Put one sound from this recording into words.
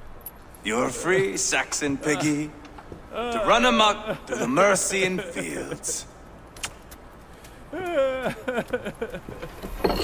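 A man taunts loudly and mockingly, close by.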